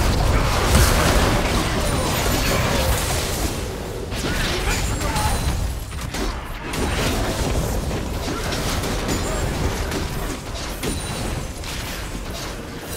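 Sharp hits and blasts clash repeatedly.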